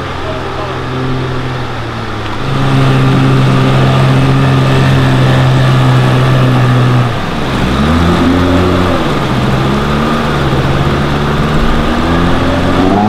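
An outboard motor drones loudly, its pitch rising and falling.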